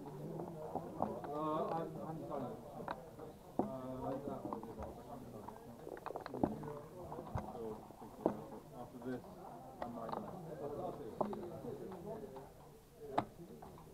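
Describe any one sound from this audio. Backgammon checkers click as they are moved on a board.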